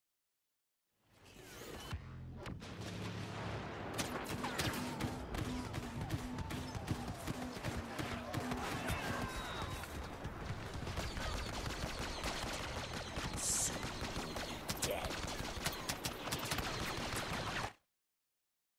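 Blaster fire crackles and zaps in rapid bursts.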